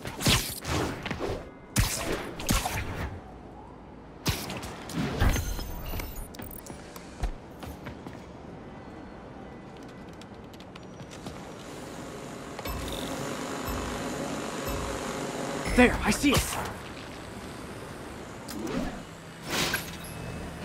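A web line zips and snaps.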